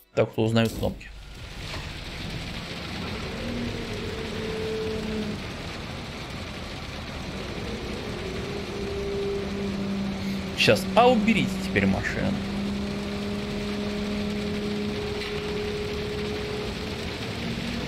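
A truck's diesel engine hums steadily.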